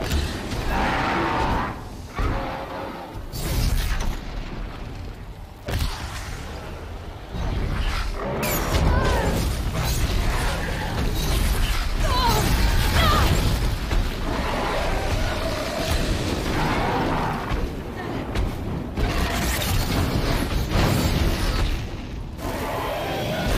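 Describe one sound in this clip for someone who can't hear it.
Flames roar.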